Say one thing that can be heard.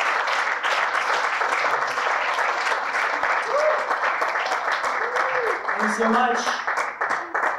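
An elderly woman speaks into a microphone, heard through loudspeakers.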